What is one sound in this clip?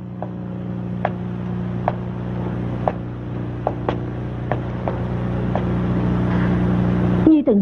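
Footsteps tap softly across a floor.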